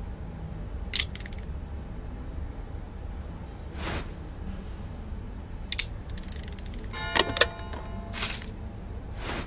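A clock's hands click and whir as they turn.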